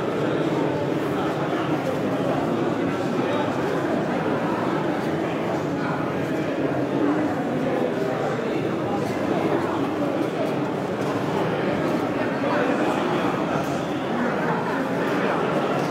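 A crowd of adults murmurs and chatters nearby.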